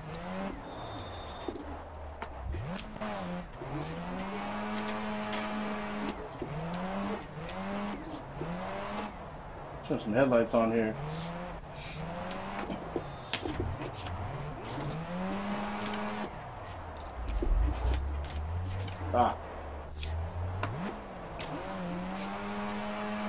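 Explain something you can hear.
A car engine in a racing game revs up and down sharply.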